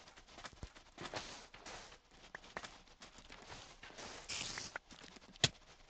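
A shovel digs into sand with short scraping bursts.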